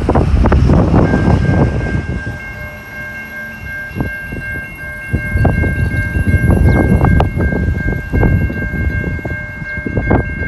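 A train horn blows a long steady chord in the distance.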